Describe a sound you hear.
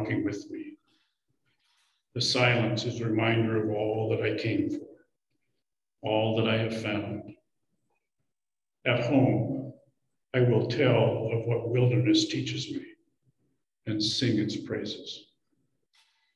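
An elderly man speaks calmly into a microphone, heard through an online call.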